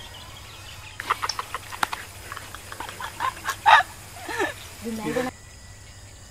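Young men laugh together outdoors.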